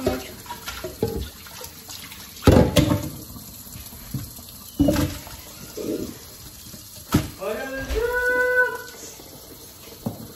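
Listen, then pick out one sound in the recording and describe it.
Water splashes over hands being rinsed.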